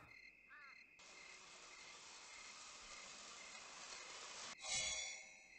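A magical shimmering whoosh swirls and sparkles.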